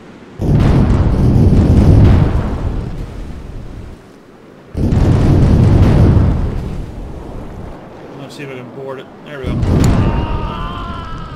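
Cannons fire in rumbling booming volleys.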